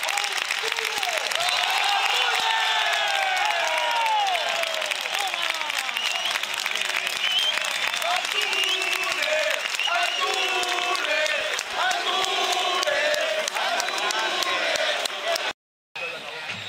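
A stadium crowd chants and sings loudly.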